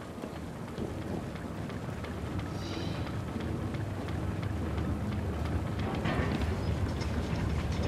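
Footsteps thud quickly across a rooftop.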